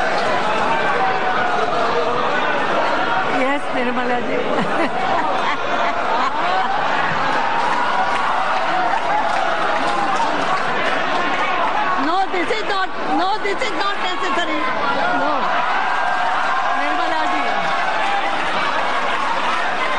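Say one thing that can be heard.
A woman speaks into a microphone, laughing.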